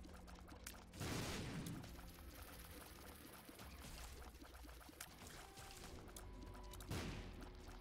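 An explosion booms with a loud, noisy burst.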